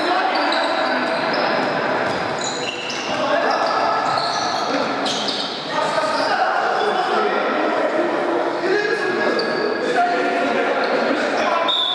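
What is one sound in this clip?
Sports shoes squeak sharply on an indoor court.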